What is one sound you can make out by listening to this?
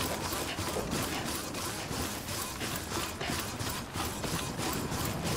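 Footsteps swish quickly through tall grass.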